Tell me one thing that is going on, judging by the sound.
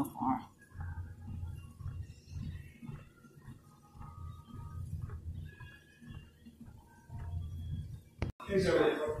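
Footsteps thud rhythmically on a treadmill belt.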